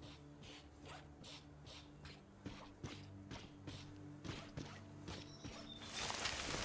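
Footsteps thud steadily on soft ground.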